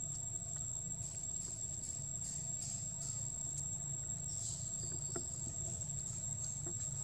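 Dry leaves rustle under a small monkey's feet.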